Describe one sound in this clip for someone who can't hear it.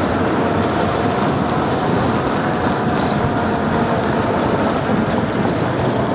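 Wind rushes loudly and steadily past.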